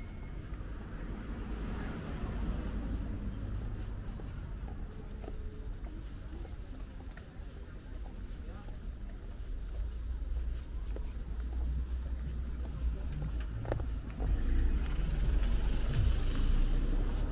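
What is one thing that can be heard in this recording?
Distant city traffic hums steadily outdoors.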